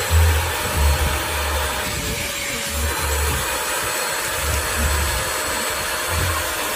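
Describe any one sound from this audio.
A handheld vacuum whirs steadily as it sucks at fabric.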